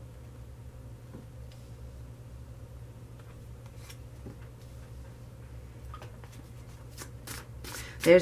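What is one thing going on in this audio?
Cards are laid softly onto a table.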